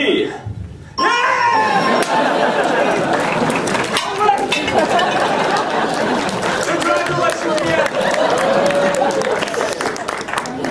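An audience laughs and cheers in a large echoing hall.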